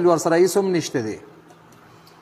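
A man speaks loudly through a microphone in a chanting voice.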